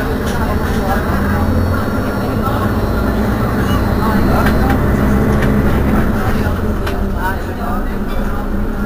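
A bus engine idles close by with a low, steady rumble.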